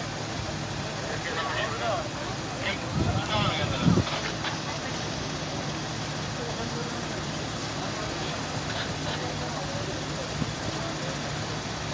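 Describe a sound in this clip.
Men talk at a distance outdoors.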